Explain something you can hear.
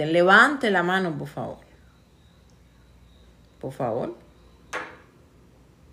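A woman speaks in short phrases over an online call.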